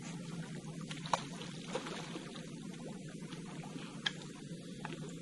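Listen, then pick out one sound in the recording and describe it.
A fish splashes in the water close by.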